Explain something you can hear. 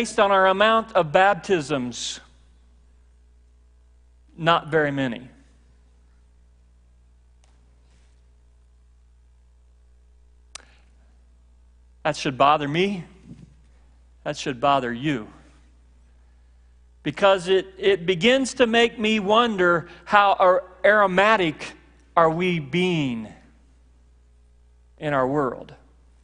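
A middle-aged man speaks with animation through a microphone, pausing often.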